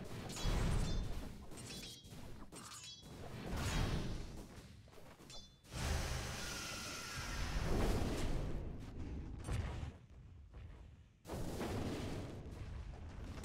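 Game sound effects of blows and magic spells crackle and clash in quick bursts.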